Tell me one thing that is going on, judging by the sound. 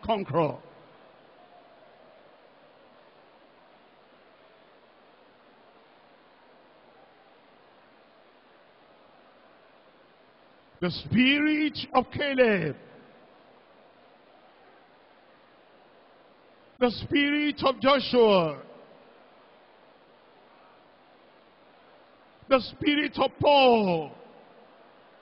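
A man prays loudly into a microphone in short, fervent bursts, heard over a loudspeaker.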